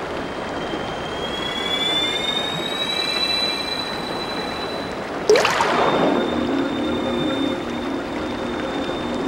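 A bright magical shimmer swells and rings out.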